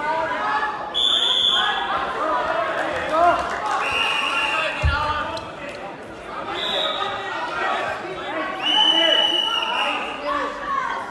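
A referee blows a whistle in short shrill blasts.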